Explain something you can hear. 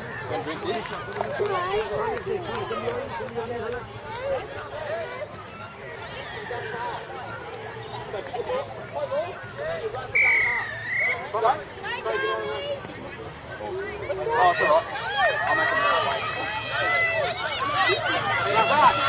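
A crowd of adults and children chatters and calls out outdoors.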